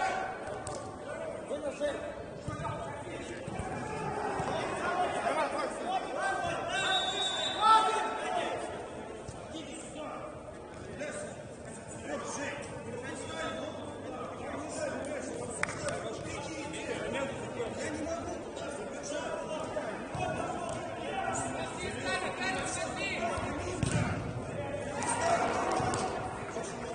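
Players shout and call to each other across an echoing indoor hall.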